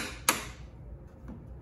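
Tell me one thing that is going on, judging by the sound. A hammer taps sharply on a screwdriver handle.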